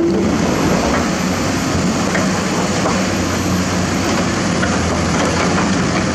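An excavator bucket scrapes through wet mud.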